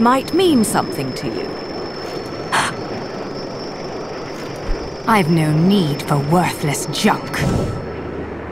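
A woman speaks in a haughty, theatrical voice.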